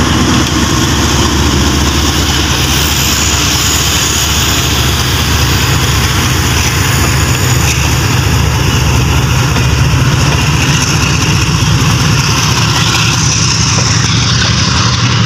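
Train wheels clatter and rumble over the rails.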